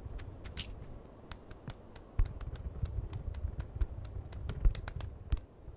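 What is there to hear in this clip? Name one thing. A football thumps as it is kicked along.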